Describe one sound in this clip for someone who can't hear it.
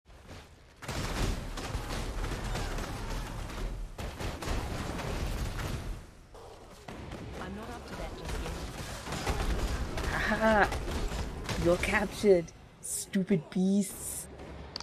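Magic blasts crackle and explode in a fast fight.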